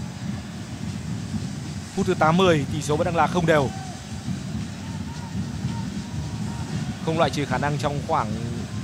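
A large stadium crowd roars and murmurs steadily in the distance.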